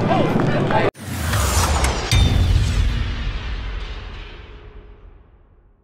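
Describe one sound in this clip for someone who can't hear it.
A whooshing electronic sound swells with a rumbling boom.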